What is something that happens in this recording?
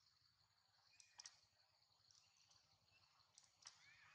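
A baby monkey squeaks sharply a few times nearby.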